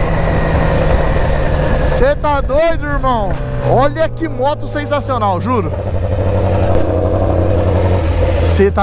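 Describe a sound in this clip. A motorcycle engine drones steadily up close.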